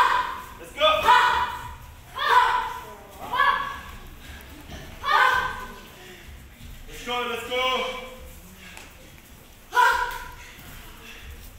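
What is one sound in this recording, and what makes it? Young fighters let out short, sharp shouts again and again in an echoing hall.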